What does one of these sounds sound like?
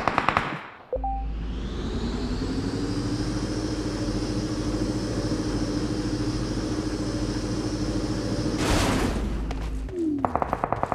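A small vehicle engine hums steadily while driving.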